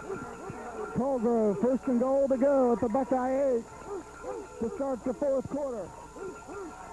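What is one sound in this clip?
Young men shout from the sidelines.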